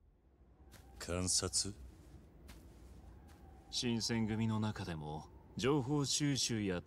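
A young man speaks calmly and quietly up close.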